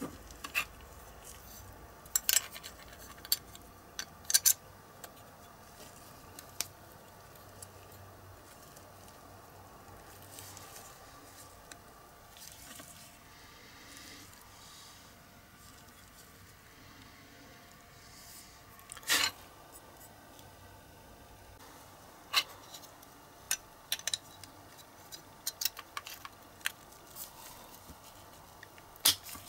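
Small plastic and metal parts click and tap together as they are fitted by hand.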